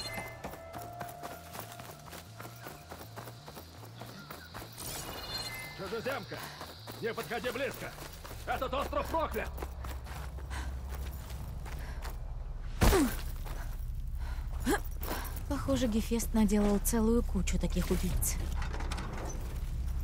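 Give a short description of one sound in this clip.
Footsteps rustle through tall grass and leaves.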